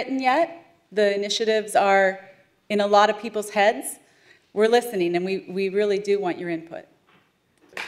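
A woman speaks with animation into a microphone in a large hall.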